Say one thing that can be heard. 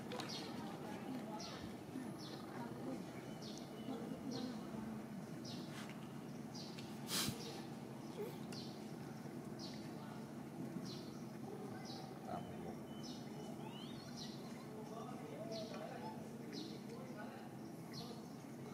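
A monkey chews food softly nearby.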